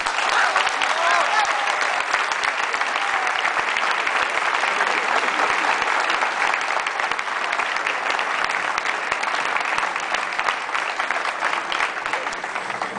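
A crowd of men claps steadily outdoors.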